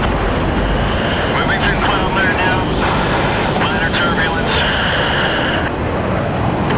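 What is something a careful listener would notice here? A cockpit warning tone beeps.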